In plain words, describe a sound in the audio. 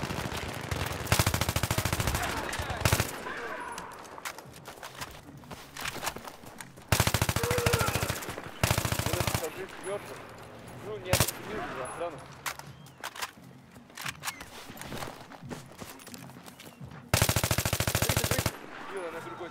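A rifle fires rapid bursts of gunshots close by.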